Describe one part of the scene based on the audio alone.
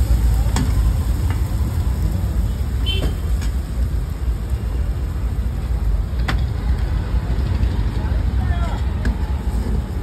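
A metal ladle scrapes and clinks against a frying pan.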